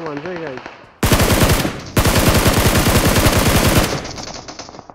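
An automatic rifle fires rapid bursts of shots close by.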